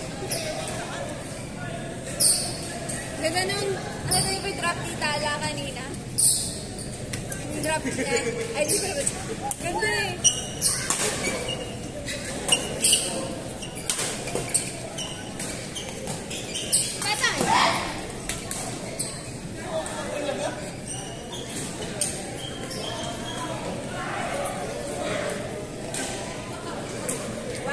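Distant voices of young men and women chatter and call out across the hall.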